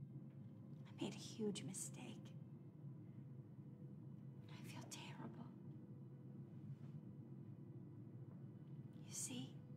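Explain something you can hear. A woman speaks in a tearful, shaky voice, close by.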